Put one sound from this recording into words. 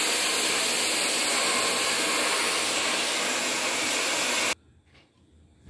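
A hair dryer blows loudly and steadily close by.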